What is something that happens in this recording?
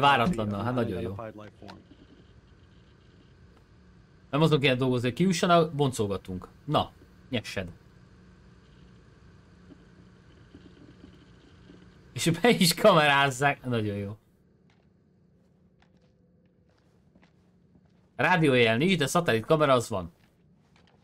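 A man speaks calmly and low.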